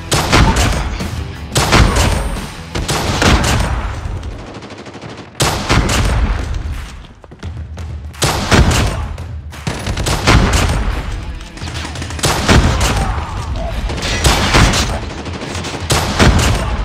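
Rapid gunfire bursts loudly, in short bursts again and again.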